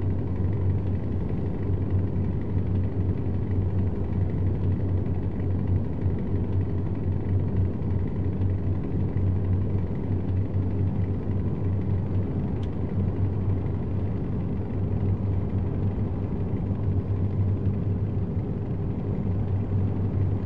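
A truck engine drones steadily with a low rumble.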